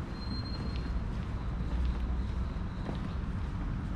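Footsteps tap faintly on a hard floor in an echoing hall.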